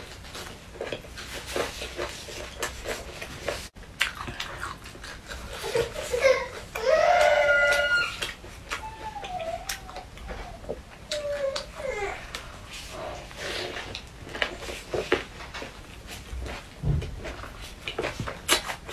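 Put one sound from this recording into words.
Lettuce leaves crunch as a young woman bites into a wrap.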